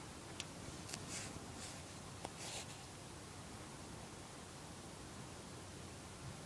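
Small twigs crackle faintly as they burn.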